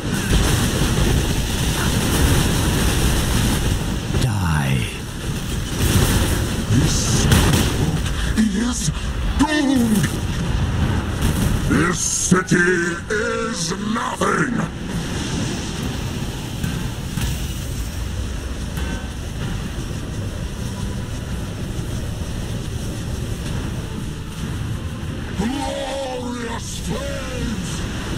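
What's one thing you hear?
Magic blasts rumble and crackle in quick succession.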